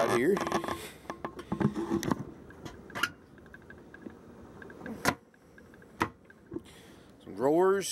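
A wooden cabinet door knocks and clicks as it opens and shuts.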